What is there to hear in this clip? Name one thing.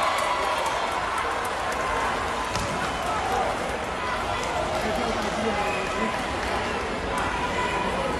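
A ball is struck with sharp slaps.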